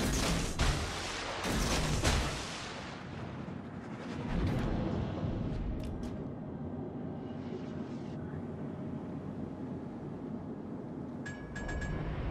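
Sea water rushes and splashes against a moving ship's hull.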